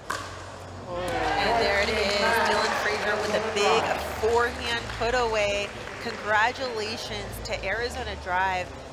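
A crowd cheers and applauds after the point.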